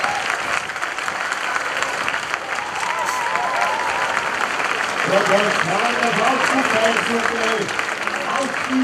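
A brass band plays a lively march outdoors.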